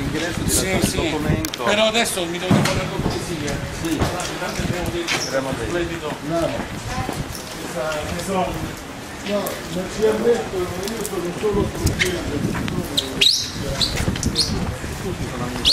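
Men talk with animation close by.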